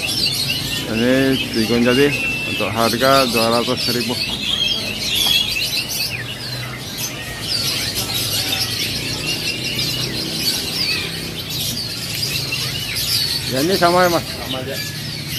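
A bird whistles in rising and falling warbles.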